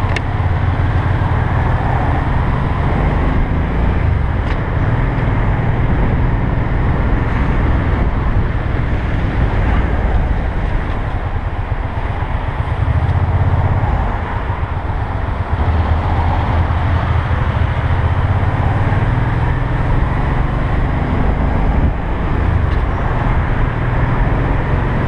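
A motorcycle engine rumbles steadily up close while riding.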